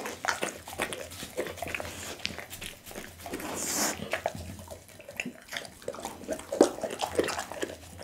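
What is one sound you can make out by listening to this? A dog licks a table with its tongue.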